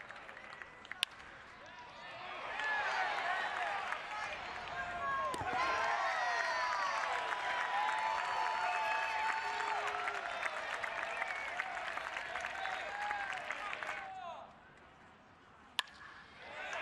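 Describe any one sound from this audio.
A bat sharply cracks against a baseball.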